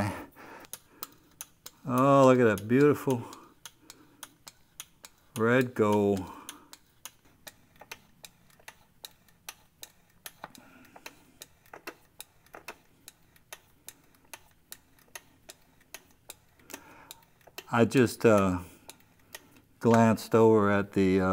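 A hand pump clicks softly and steadily.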